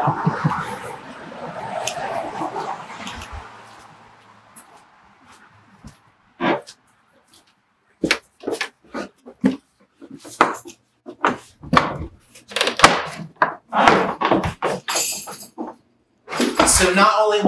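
Footsteps walk along at a steady pace.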